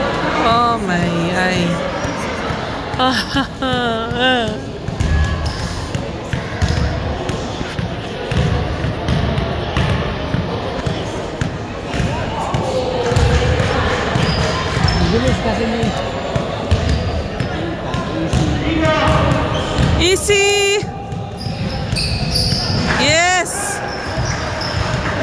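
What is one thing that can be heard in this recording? Young players call out and shout to each other.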